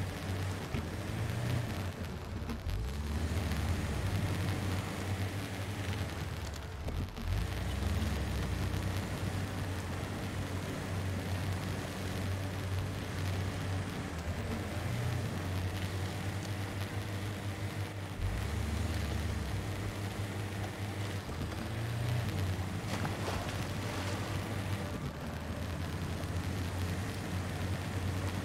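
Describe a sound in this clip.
Water splashes around tyres driving through a shallow river.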